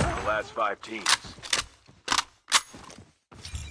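Gunshots crack out in quick, sharp bursts.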